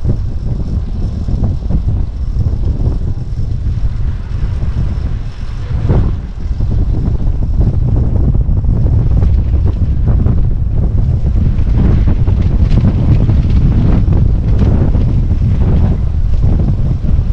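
Wind rushes loudly past a fast-moving bicycle.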